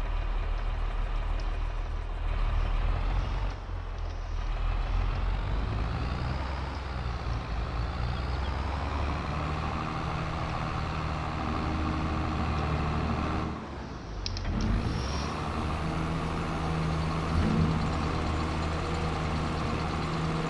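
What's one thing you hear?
A tractor engine rumbles steadily while driving.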